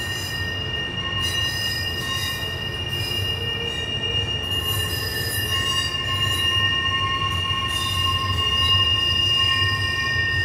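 Train wheels squeal with a steady high whine.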